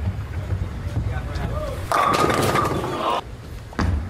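Bowling pins crash and clatter as the ball strikes them.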